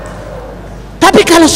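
A middle-aged man speaks loudly through a microphone and loudspeakers.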